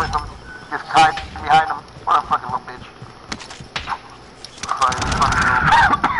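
A rifle fires in quick bursts.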